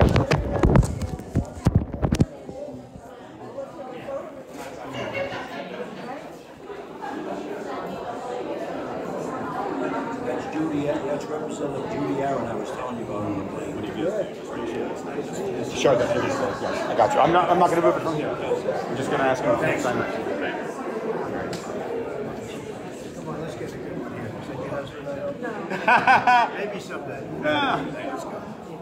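A crowd of people chatter close by in an echoing hall.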